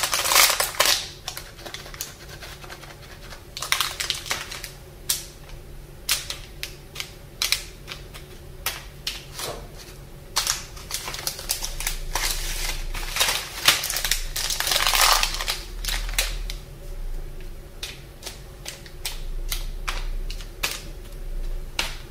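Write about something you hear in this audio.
Gloved hands tap softly on plastic wrappers.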